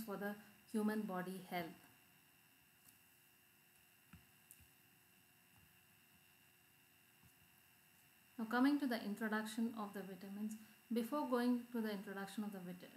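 A woman speaks calmly into a microphone, pausing now and then.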